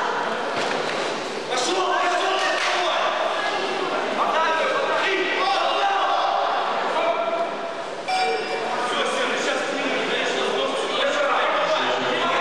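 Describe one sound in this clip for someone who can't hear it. A crowd of men shouts and cheers in a large echoing hall.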